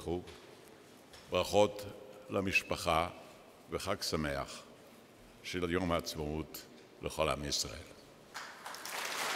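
An elderly man speaks slowly and deliberately into a microphone in a large echoing hall.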